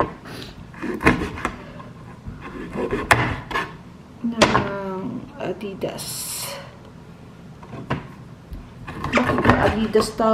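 A knife chops on a plastic cutting board.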